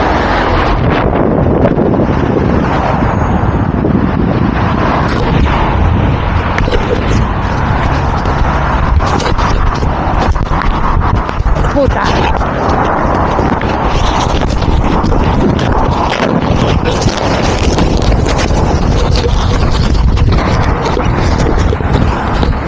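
Clothing and gloves rub and scrape against the microphone.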